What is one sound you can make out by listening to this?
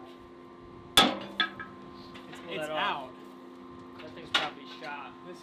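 A hammer strikes hot metal on an anvil with a sharp ring.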